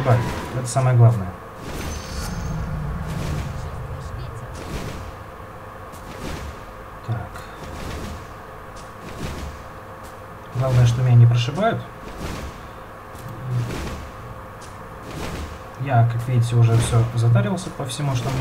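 Weapons clash and blows land repeatedly in a small skirmish.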